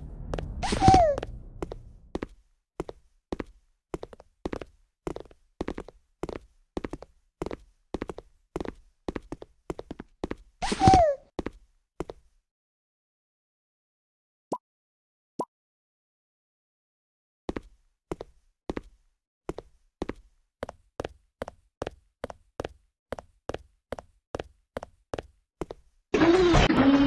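Footsteps thud at a steady walking pace.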